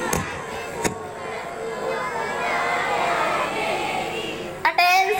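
A crowd of children chants together outdoors.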